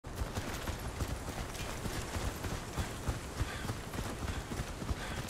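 Footsteps thud quickly and steadily as a game character runs.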